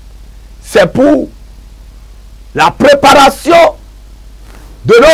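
A man speaks forcefully into a microphone in short bursts.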